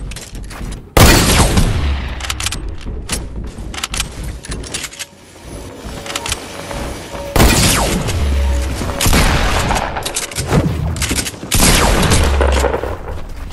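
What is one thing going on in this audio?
Rifle shots bang loudly a few times.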